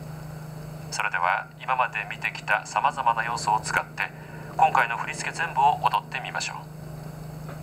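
A woman speaks calmly through a close microphone.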